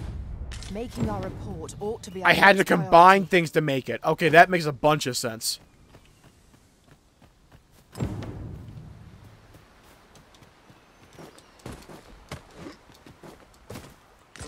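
Footsteps run over grass and stony ground.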